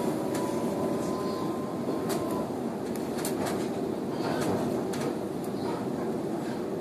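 A train rumbles steadily along the rails.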